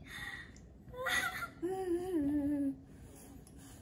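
A little girl speaks in a high voice nearby.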